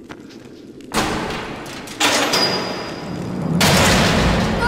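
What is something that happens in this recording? A heavy metal chain rattles and clanks.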